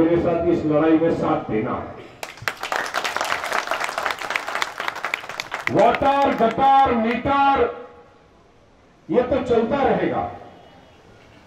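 A man speaks forcefully into a microphone over a loudspeaker.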